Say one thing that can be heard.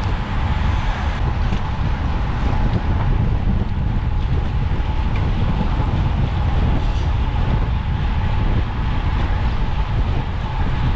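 Wind roars loudly across a microphone moving at speed outdoors.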